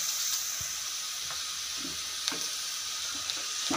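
A wooden spoon scrapes and knocks against a metal pot.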